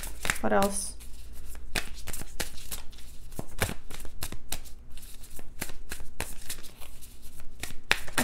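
Playing cards riffle and click as a deck is shuffled.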